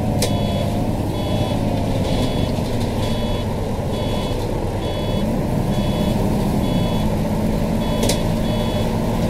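A turn signal ticks in an even rhythm.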